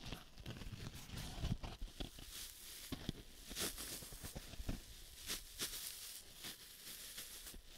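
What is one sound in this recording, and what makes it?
Fingers squeeze and scratch a foam sponge very close up.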